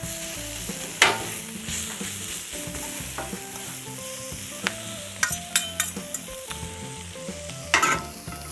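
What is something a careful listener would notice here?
Metal spatulas chop and tap against a griddle.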